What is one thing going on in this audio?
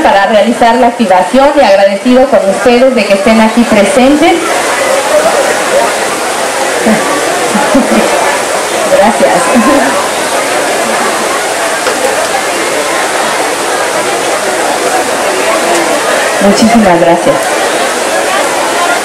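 A large crowd chatters and murmurs loudly all around.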